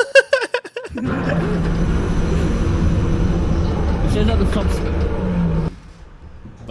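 A young man slurps loudly from a cup.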